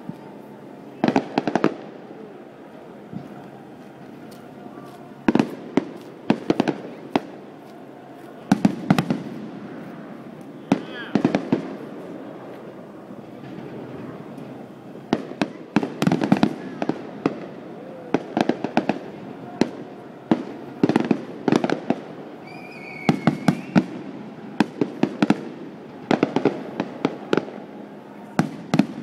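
Distant firework shells burst in rapid booms.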